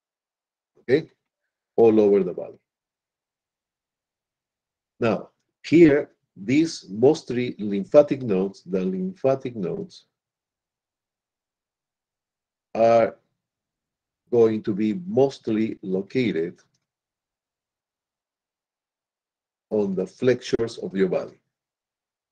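A middle-aged man speaks calmly through a microphone in an online call, in short bursts with pauses.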